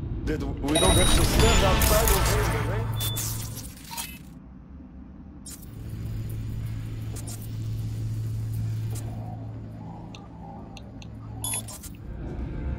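Short electronic beeps and chirps sound now and then.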